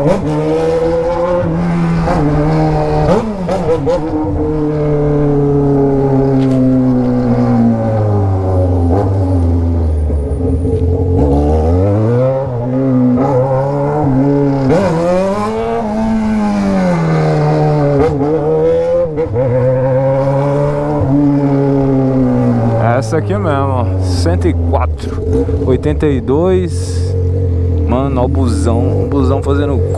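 A motorcycle engine roars close by, revving up and down as it rides.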